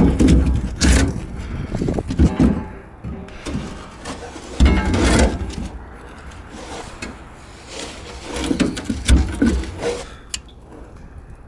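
A gloved hand scrapes and knocks inside a metal box.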